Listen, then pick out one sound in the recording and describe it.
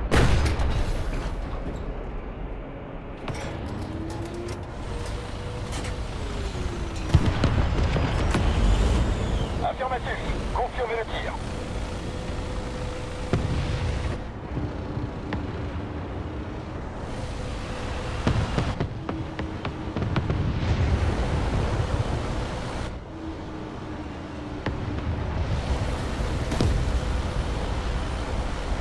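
A heavy tank engine rumbles low and steadily, rising and falling.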